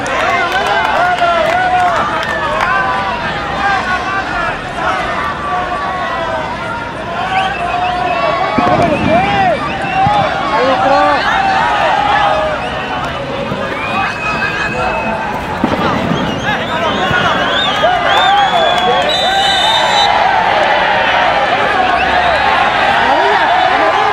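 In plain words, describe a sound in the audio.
A large crowd chatters and shouts from the stands outdoors.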